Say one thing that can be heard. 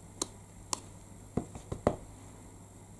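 A sponge ink pad dabs and taps on paper.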